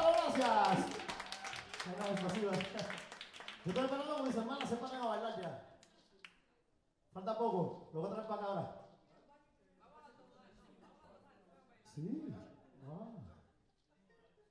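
A man sings through a microphone in short bursts, with pauses between.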